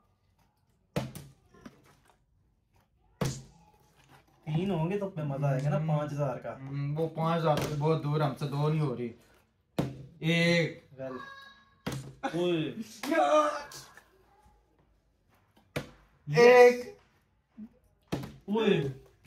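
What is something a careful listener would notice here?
A plastic bottle thumps down onto a wooden table.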